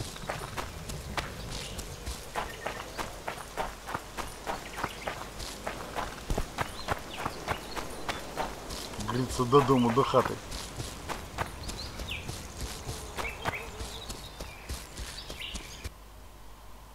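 Footsteps crunch steadily over leaves and forest ground.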